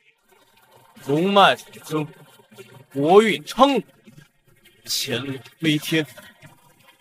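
A young man speaks loudly and dramatically.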